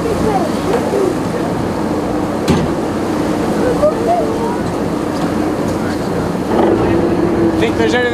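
Water splashes and churns on the sea surface.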